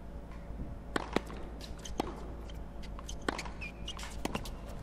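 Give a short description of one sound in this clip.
A tennis ball is struck with a racket.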